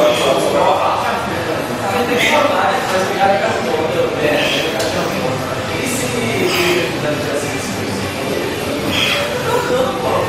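A man grunts and breathes hard with effort.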